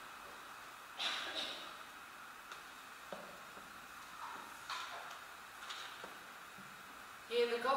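A woman speaks calmly from a distance in a large echoing hall.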